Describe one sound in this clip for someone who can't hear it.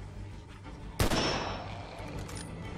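A rifle fires a single loud shot that rings out.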